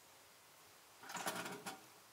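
A metal pan clanks.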